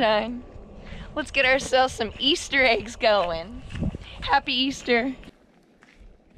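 A woman talks cheerfully and close up.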